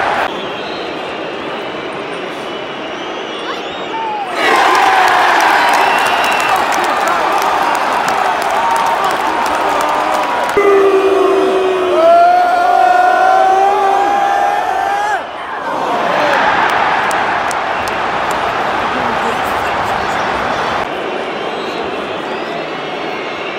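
A huge stadium crowd roars and cheers all around.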